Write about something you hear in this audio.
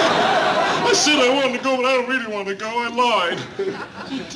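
An elderly man speaks loudly and with exasperation.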